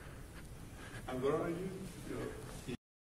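A man speaks on a phone nearby.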